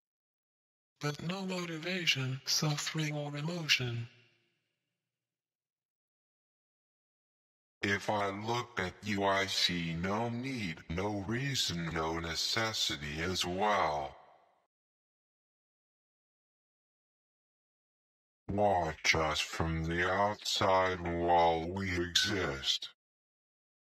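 A man sings in short phrases with pauses between them.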